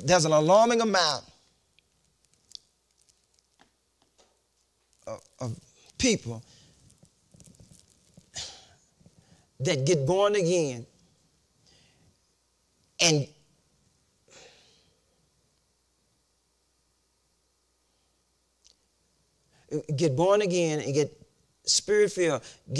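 An elderly man speaks with animation, pausing often between phrases.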